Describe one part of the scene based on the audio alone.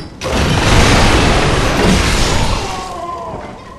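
Wooden crates smash and splinter.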